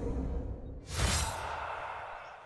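A magical blast booms.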